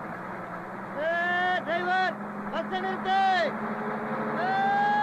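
A man sings loudly and with feeling.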